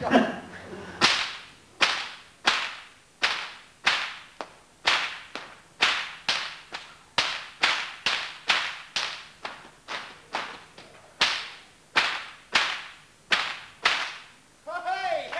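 An axe chops into wood with sharp, regular blows.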